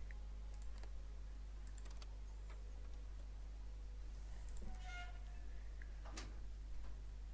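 A heavy metal mechanism clanks and clicks.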